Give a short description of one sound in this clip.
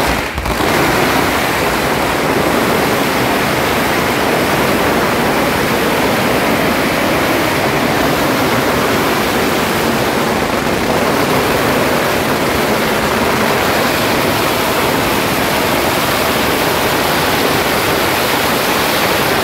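Firecrackers crackle and pop rapidly and loudly, close by.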